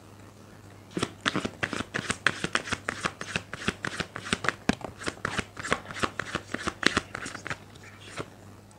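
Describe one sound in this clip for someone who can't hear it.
Cards are shuffled in the hands with quick, rapid flicking clicks.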